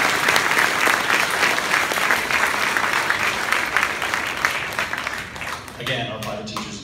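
A large audience applauds loudly in an echoing hall, the clapping fading away.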